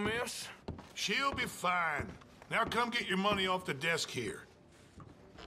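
A second man speaks calmly in reply.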